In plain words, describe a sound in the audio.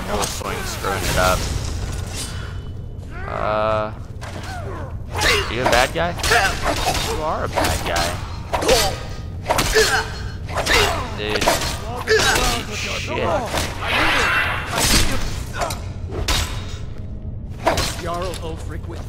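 Steel blades clash and strike repeatedly in a fight.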